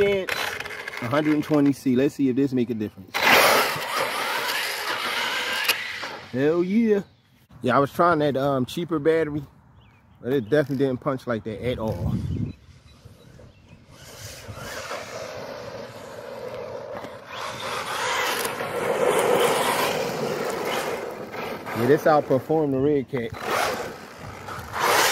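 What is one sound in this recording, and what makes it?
A small electric motor whines as a toy car speeds away.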